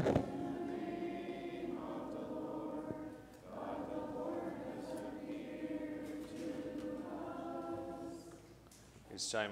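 A man chants in a slow sung voice, echoing in a large hall.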